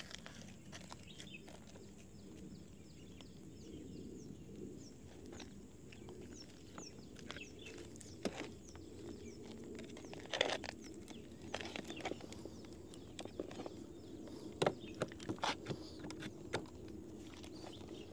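Small plastic parts click and snap as wires are fitted.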